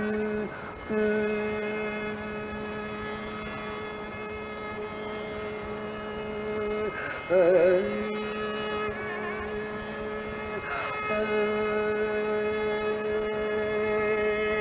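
A bowed string instrument plays long, steady notes.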